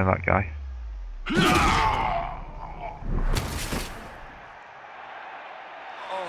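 Armoured players collide with a heavy thud.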